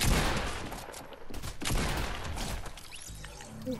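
Gunshots fire in a game.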